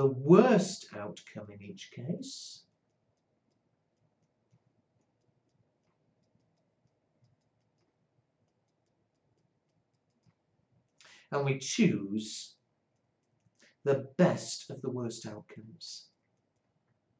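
An elderly man speaks calmly into a microphone, in short bursts with long pauses.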